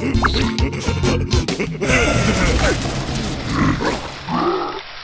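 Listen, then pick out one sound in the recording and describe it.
Cartoon creatures chatter and squeal in high, silly voices.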